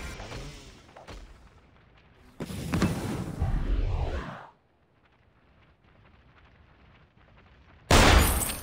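Game spell blasts and hits burst out in quick clashes.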